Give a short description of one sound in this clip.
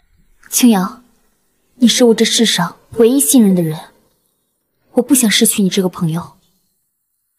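A young woman speaks close by in a pleading voice.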